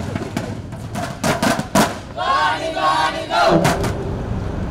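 Inflatable thunder sticks bang together rapidly in a crowd.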